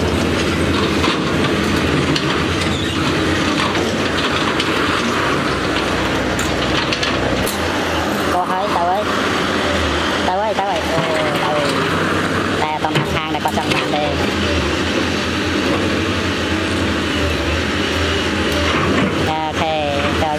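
An excavator's diesel engine rumbles and roars steadily nearby.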